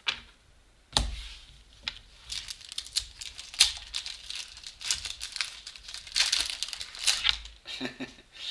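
A foil wrapper crinkles and tears.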